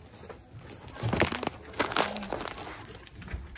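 A cardboard box rustles and knocks as a hand handles it close by.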